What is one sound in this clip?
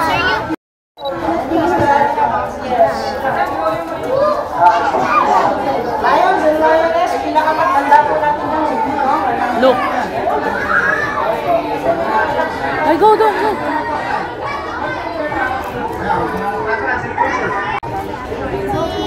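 Young children chatter and call out excitedly.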